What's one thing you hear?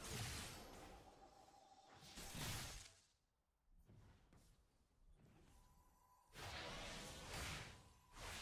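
Blades slash and magic blasts burst in a fast, noisy fight.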